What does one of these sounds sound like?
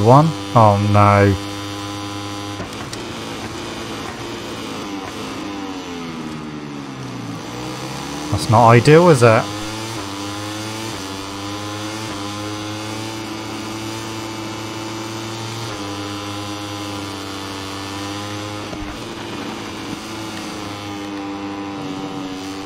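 A racing motorcycle engine whines steadily and shifts pitch as it speeds up and slows down.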